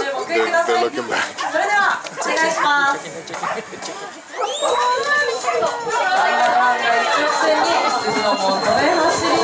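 A flock of sheep bleats loudly, many voices overlapping.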